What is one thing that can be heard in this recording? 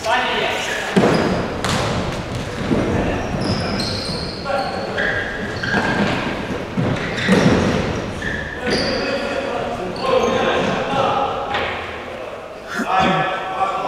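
A ball thuds when kicked on a hard floor.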